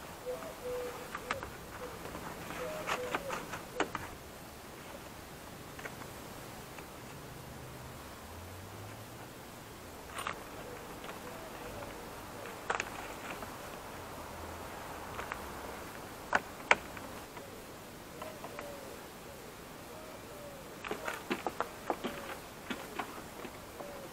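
Plastic trim clips snap and click as a car door panel is pried off and refitted.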